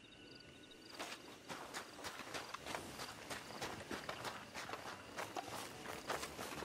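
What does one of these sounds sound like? Hooves thud on a dirt road at a trot.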